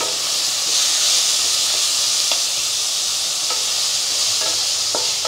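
A spatula scrapes and knocks against a metal pan.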